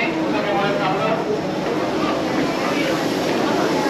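Footsteps shuffle as a crowd walks out.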